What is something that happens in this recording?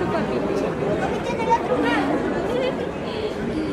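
A wheeled suitcase rolls over a tiled floor.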